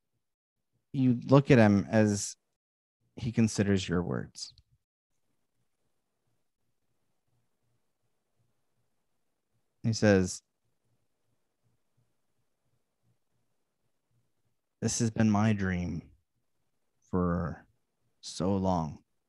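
A young man speaks calmly through a microphone over an online call, in short bursts.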